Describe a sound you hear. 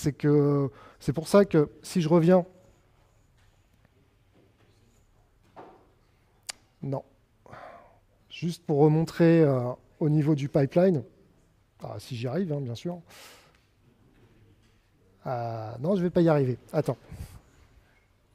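A young man speaks calmly through a microphone in an echoing room, in short bursts with pauses.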